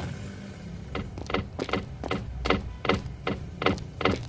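Footsteps tap steadily on pavement.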